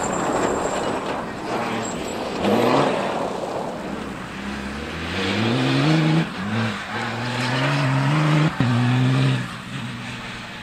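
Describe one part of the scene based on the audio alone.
Tyres spray loose dirt and gravel.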